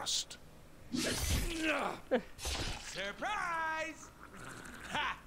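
A man gasps and groans in pain.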